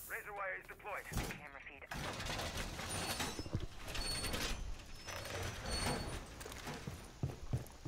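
Metal panels clatter and bang as a wall is reinforced.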